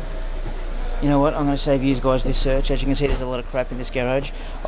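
A man speaks close by, with animation.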